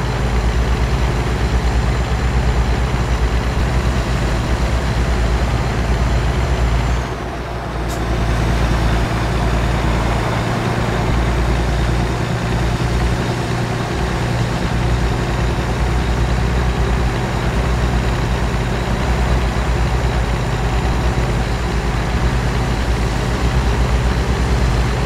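A heavy truck engine drones steadily while driving on a highway.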